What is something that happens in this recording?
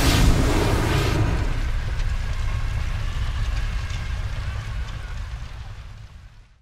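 A fire roars with a deep rumble and slowly fades.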